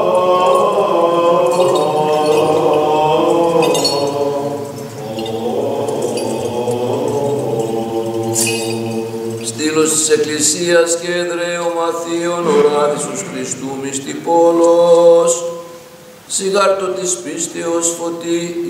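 Men chant together in a slow, resonant drone.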